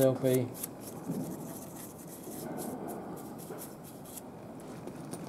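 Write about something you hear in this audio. A wire brush scrubs a small metal fitting in short strokes.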